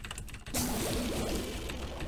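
A video game laser beam blasts with a loud hiss.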